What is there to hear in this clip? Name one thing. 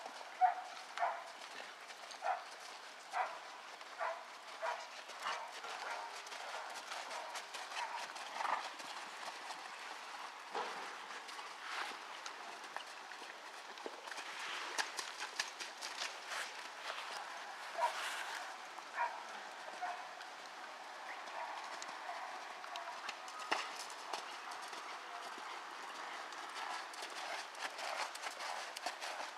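Horse hooves thud rhythmically on soft sand.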